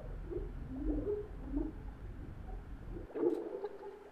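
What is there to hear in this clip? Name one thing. Water splashes as a swimmer breaks the surface.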